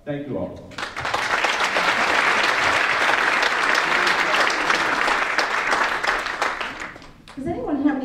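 A crowd applauds and cheers in a room.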